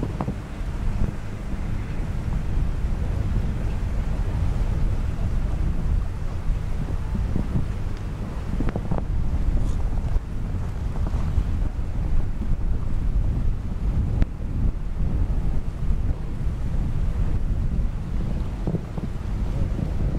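Hooves thud on soft sand as a horse canters.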